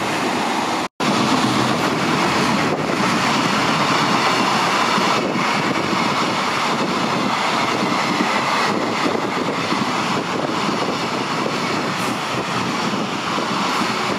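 A freight train rushes past close by, rumbling and clattering loudly.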